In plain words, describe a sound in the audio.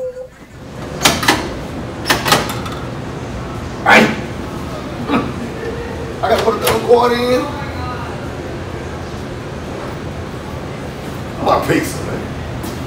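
Balls clatter and knock inside an arcade game.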